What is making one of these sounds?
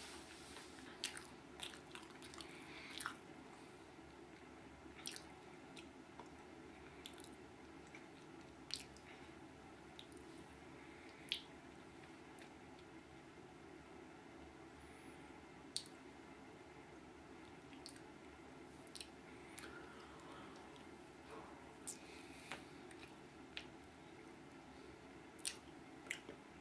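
A man bites into and crunches food close by.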